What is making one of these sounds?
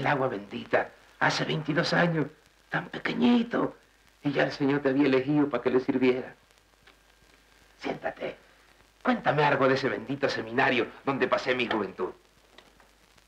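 An elderly man speaks warmly and with animation, close by.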